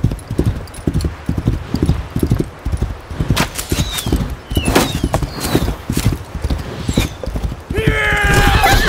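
Horse hooves pound rapidly through snow.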